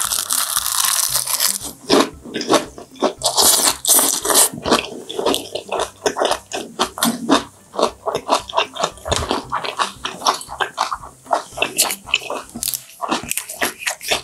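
A young woman smacks her lips wetly while eating.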